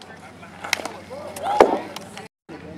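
A metal bat cracks against a baseball.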